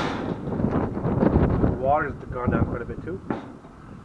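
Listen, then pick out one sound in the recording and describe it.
A metal grill lid thuds shut.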